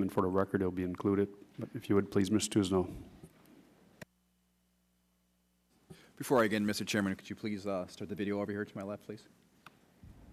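A middle-aged man speaks firmly into a microphone in a large hall.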